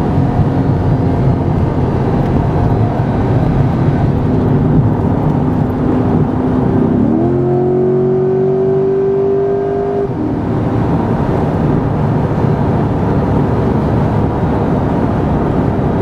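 A car engine drones steadily and then revs up sharply as the car accelerates.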